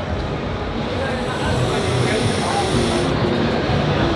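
A young man exhales a long breath of vapour with a soft hiss.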